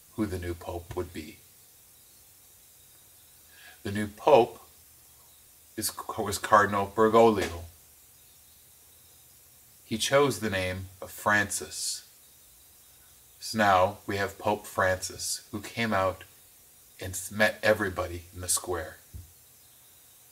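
A middle-aged man speaks with animation, close to a microphone, in short bursts.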